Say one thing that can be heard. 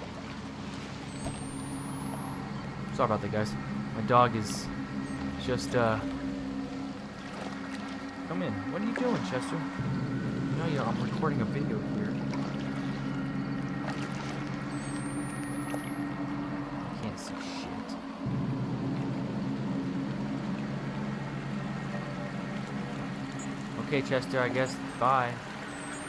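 Water laps gently against a wooden raft.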